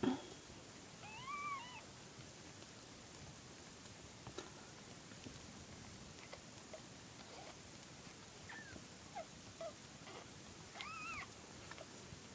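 Tiny kittens mew softly now and then.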